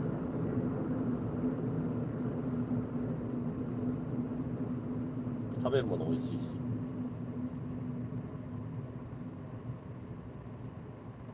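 A car engine hums steadily as tyres roll along a highway.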